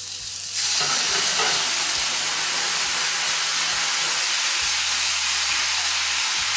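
Eggplant slices sizzle steadily in a hot frying pan.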